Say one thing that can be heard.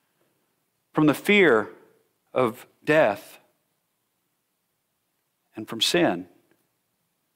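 A middle-aged man speaks with animation into a microphone in a large, echoing room.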